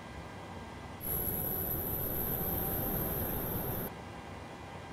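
A jet engine roars and whines loudly, heard from outside the aircraft.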